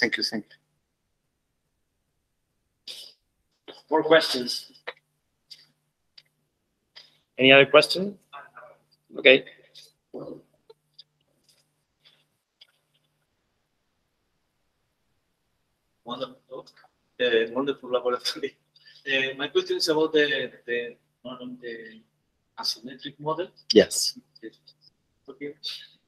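A man lectures calmly through a microphone, speaking in bursts with pauses.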